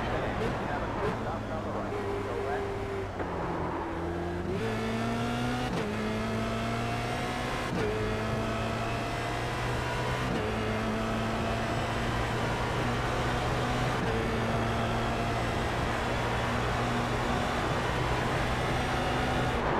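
A racing car engine revs high and climbs through the gears, with short drops at each gear change.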